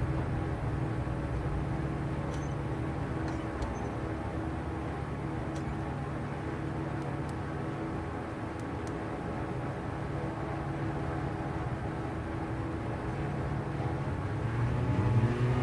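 A small propeller engine idles steadily.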